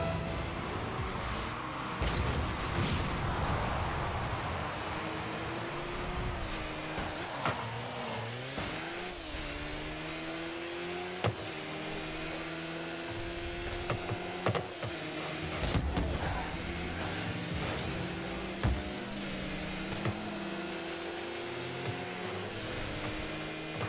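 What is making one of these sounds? A game car's engine hums and revs steadily.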